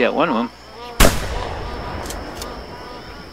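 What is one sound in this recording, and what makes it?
A shotgun fires a single shot that echoes away.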